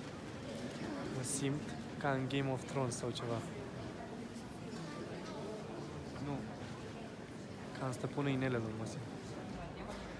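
A young man speaks quietly close by in a large echoing hall.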